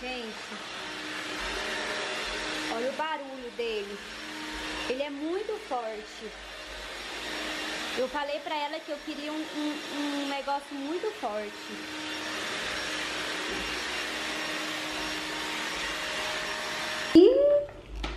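A vacuum cleaner hums steadily as it sweeps over a hard floor.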